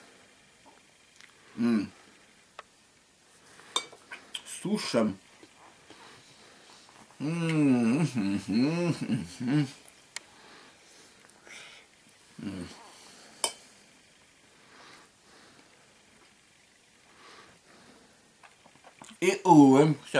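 A fork scrapes and clinks against a metal bowl.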